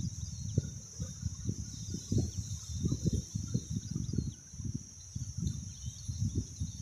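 Wind gusts and buffets outdoors.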